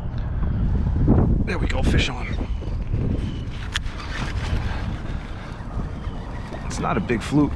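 Small waves lap against a kayak's hull.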